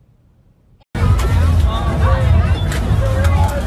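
A loud crowd shouts and cheers outdoors.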